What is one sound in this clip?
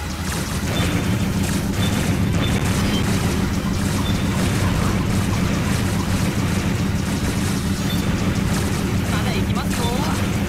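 Laser shots fire rapidly.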